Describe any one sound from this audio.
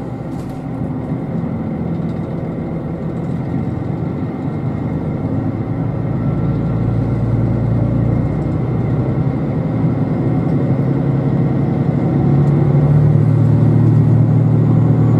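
A train rumbles as it pulls away and gradually gathers speed.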